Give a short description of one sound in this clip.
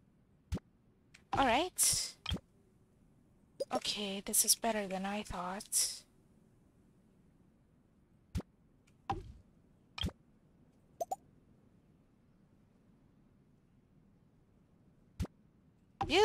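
Short electronic interface clicks sound now and then.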